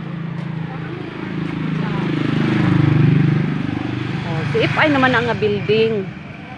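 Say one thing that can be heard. A motorbike engine passes by, rising and fading.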